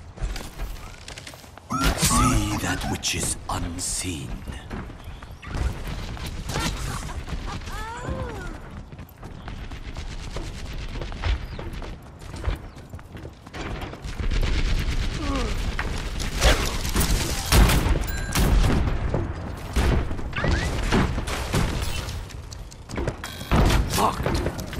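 A bowstring twangs as arrows are shot.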